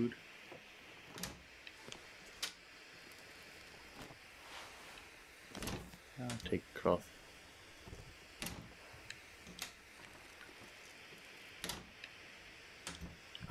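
Wooden cabinet doors knock and thud as they open.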